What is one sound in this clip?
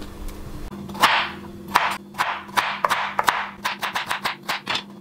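A knife chops through a carrot on a wooden board.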